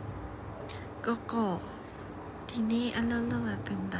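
A young woman speaks softly and playfully over an online call.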